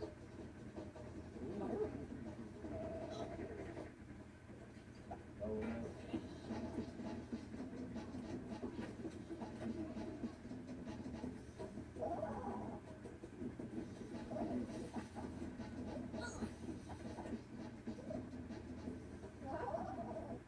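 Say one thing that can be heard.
A ceiling fan whirs steadily overhead.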